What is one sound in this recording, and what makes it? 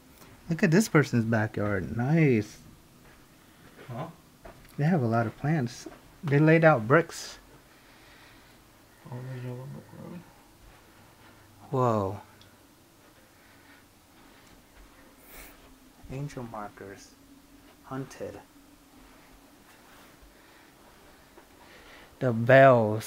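A man talks calmly close by, in short bursts with pauses.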